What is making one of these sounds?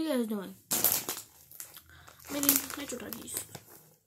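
A snack bag crinkles in a hand.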